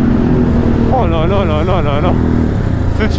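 A motorcycle engine revs up and down in quick bursts.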